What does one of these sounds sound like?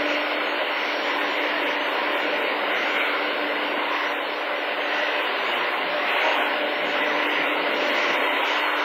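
A jet airliner's engines roar steadily as it rolls along a runway.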